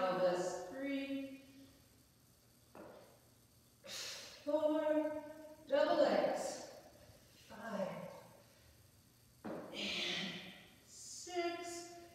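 A woman talks steadily, close by, in a slightly echoing room.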